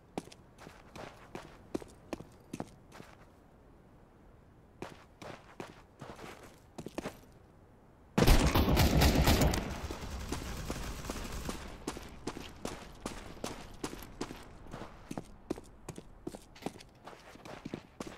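Footsteps patter quickly and steadily on hard ground.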